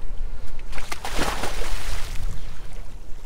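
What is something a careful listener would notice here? Water splashes as a swimmer jumps in.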